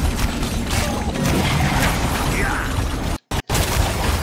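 Magic blasts burst and whoosh.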